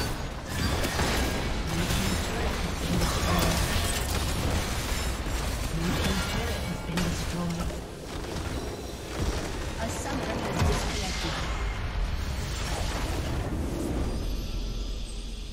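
Video game battle effects clash and crackle with spell blasts and hits.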